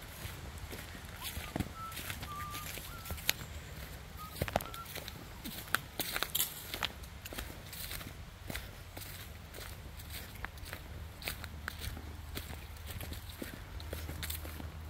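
Footsteps crunch through dry fallen leaves on a forest path.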